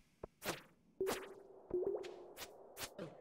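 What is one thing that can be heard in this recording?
Short chiming game tones sound.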